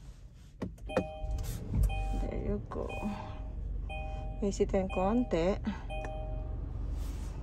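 Car dashboard buttons beep as they are pressed.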